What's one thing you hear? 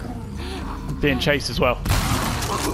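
A monster shrieks and gurgles.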